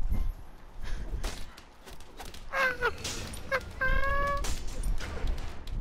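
Weapons strike and clash in a short fight.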